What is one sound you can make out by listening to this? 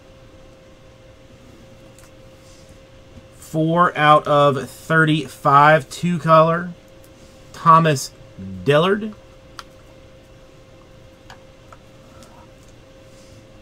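Trading cards click and rustle softly as hands handle them.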